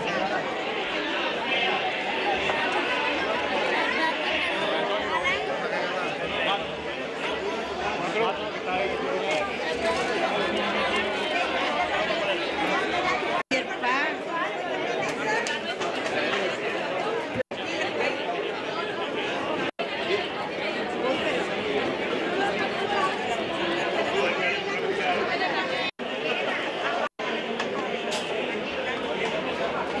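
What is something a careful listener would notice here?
A crowd of men and women chatters loudly close by, outdoors.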